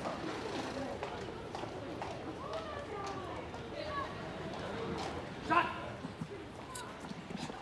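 Footsteps tread on a pavement.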